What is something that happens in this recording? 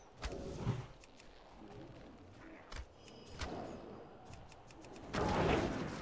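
Sharp magic blasts and hits strike in quick bursts.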